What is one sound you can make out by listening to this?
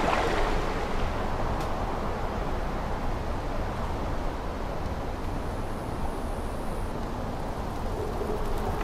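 A steady breeze rustles through grass outdoors.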